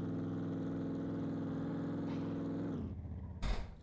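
A pickup truck engine drones steadily as the truck drives along a road.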